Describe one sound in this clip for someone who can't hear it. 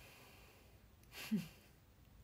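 A young woman gives a short laugh close to the microphone.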